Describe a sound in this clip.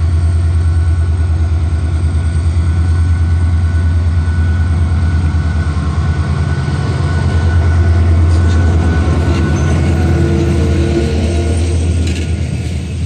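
A diesel locomotive rumbles loudly as it pulls in close by.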